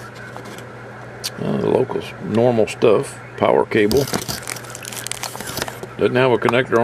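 Plastic wrapping crinkles as hands rummage through it.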